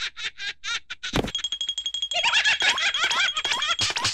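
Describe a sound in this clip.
A second cartoon creature laughs loudly in a high, squeaky voice.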